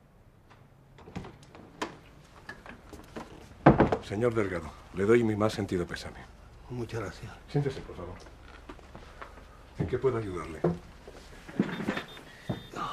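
An older man speaks calmly nearby.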